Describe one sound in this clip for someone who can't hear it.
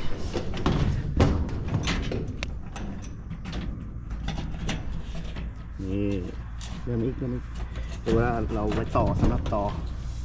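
Metal clicks and taps against a corrugated metal roof.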